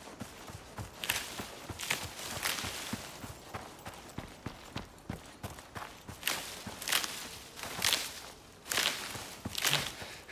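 Grass rustles loudly against a moving body.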